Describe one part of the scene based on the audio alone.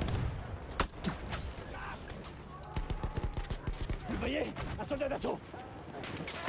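Rifles fire in sharp, rapid shots.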